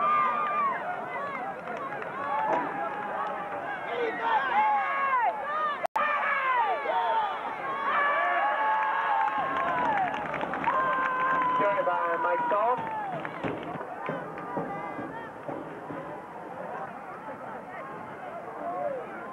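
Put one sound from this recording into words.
A crowd of spectators shouts and cheers loudly outdoors.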